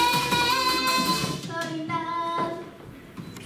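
Young girls sing together through microphones over loud music.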